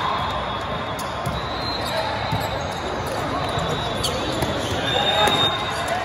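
A volleyball is struck with a hard smack.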